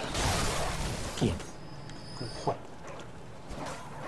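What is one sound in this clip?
A creature snarls and thuds as it is struck.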